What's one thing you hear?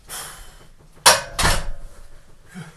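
Heavy weight plates clank as a barbell is set down on a rack.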